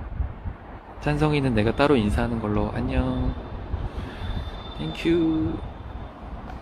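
A young man speaks casually, close to a phone microphone.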